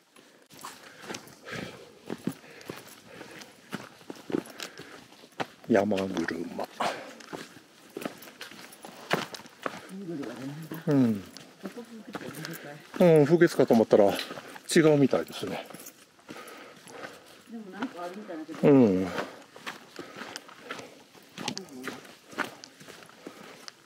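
Footsteps crunch on dry leaves along a trail.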